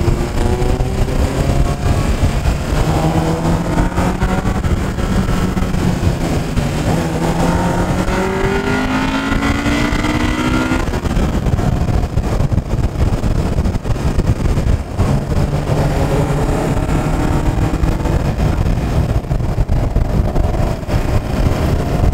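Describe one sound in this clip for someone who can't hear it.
Wind rushes loudly past a moving car.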